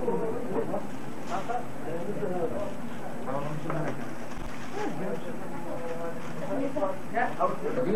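Several men talk and greet one another at once.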